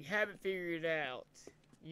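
Footsteps tap on a pavement.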